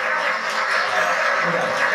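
A rock band plays loudly with drums and guitar.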